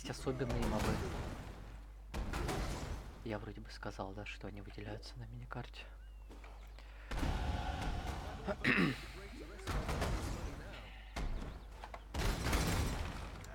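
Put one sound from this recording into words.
Fiery spells burst and roar in quick blasts.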